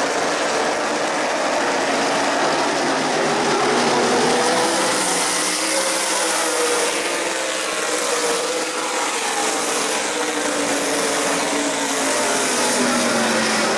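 A crowd cheers in the stands.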